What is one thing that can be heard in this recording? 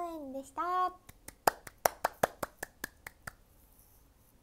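A young woman claps her hands quickly.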